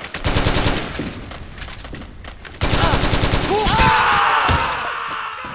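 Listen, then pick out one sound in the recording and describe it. Gunfire rattles loudly in bursts.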